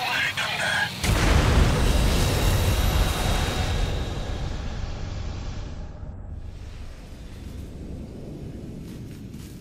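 A huge explosion booms and rumbles, then slowly fades.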